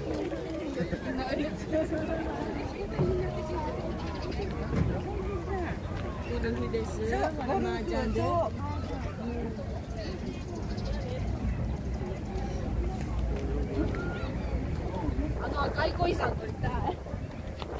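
A crowd of men and women chatters nearby, outdoors.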